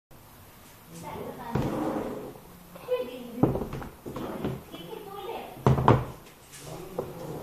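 A plastic container slides and knocks against a plastic tray on a table.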